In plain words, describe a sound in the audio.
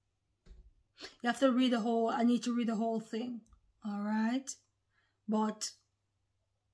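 A woman speaks softly and emotionally close to a microphone.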